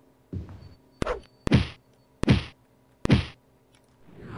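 A sword swishes and strikes in quick blows.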